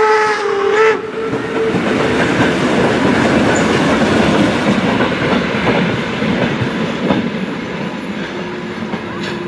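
A steam locomotive chuffs in the distance as it pulls away.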